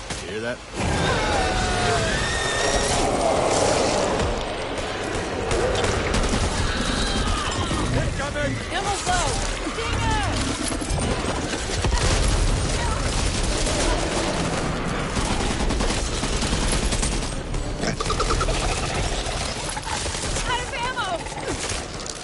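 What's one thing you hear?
Creatures screech and snarl up close.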